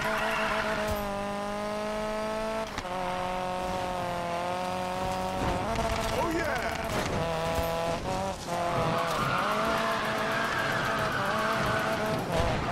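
A car engine roars at high revs, shifting up through the gears.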